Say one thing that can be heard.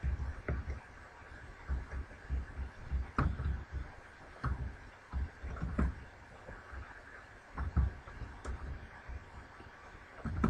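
Footsteps thud softly on snow.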